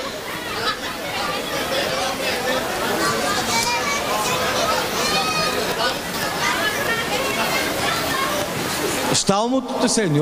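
A crowd of people chatter loudly in a room.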